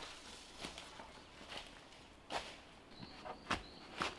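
A long branch drags and rustles through dry undergrowth.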